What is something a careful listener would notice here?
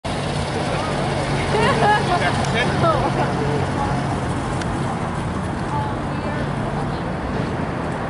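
A vehicle engine idles with a low steady hum.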